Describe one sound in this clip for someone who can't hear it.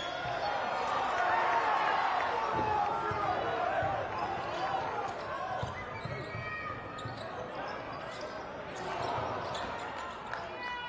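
A crowd cheers and chatters in a large echoing arena.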